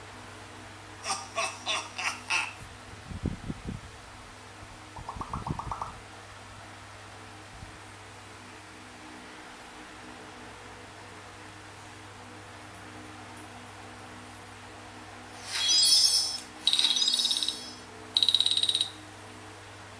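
A tablet game plays short bright chiming sound effects through a small speaker.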